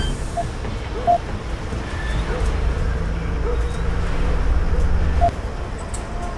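Electronic keypad buttons beep as they are pressed.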